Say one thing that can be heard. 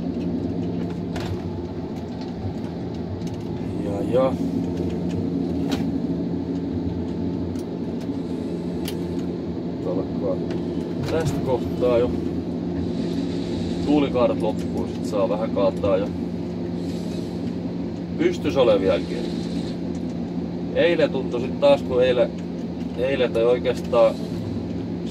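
A diesel forestry harvester's engine drones under load, heard from inside the cab.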